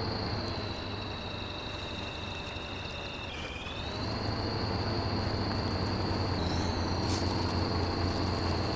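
A heavy diesel engine rumbles steadily and revs up as a vehicle crawls over rough ground.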